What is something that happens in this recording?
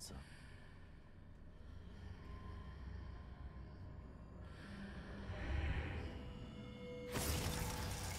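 Footsteps run across a hard stone floor.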